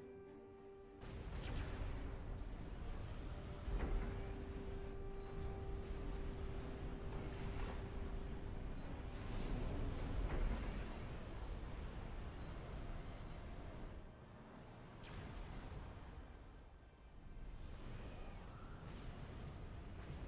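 Explosions boom and rumble in a busy battle.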